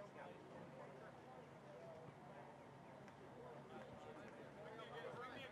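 Spectators nearby talk and call out outdoors.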